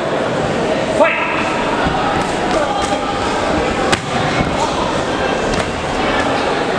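Gloved punches thud against a fighter's body.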